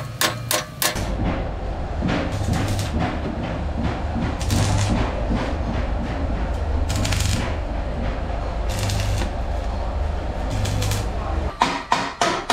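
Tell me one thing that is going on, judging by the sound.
An arc welder crackles and hisses steadily.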